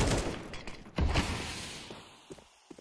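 A smoke grenade bursts with a long hiss.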